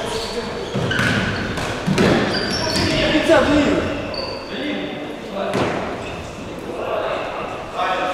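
Sneakers squeak on the hard floor.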